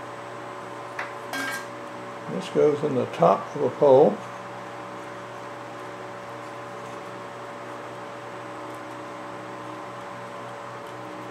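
A wooden reed scrapes and clicks as it is pushed into a narrow tube.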